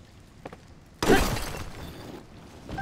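A rock shatters with a heavy crash.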